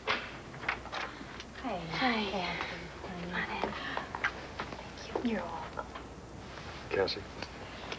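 A woman greets someone warmly at a door.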